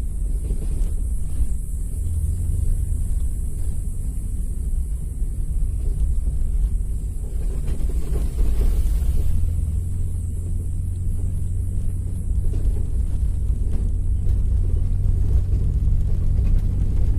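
Wind rumbles and buffets against the microphone while moving along outdoors.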